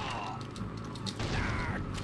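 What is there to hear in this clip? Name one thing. A rapid-firing machine gun fires a burst of shots.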